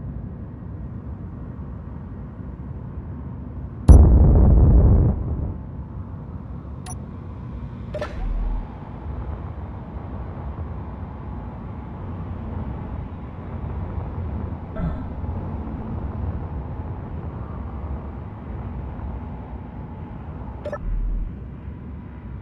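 A low machine hum drones steadily.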